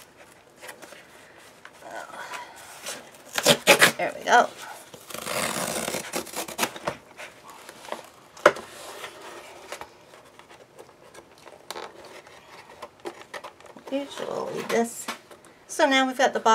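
Hands slide and tap against a cardboard box.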